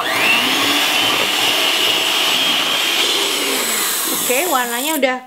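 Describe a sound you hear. An electric hand mixer whirs steadily as its beaters whisk.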